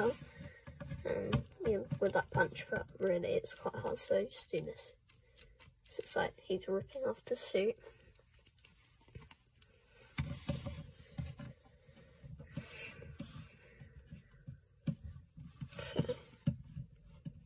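Plastic toy figures click and rattle as hands move their limbs.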